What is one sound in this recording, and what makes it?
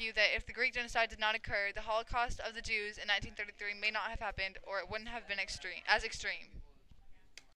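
An elderly woman speaks close by.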